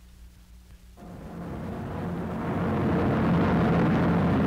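Aircraft engines roar overhead, growing louder.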